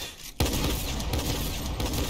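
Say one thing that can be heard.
A rapid burst of gunfire rings out.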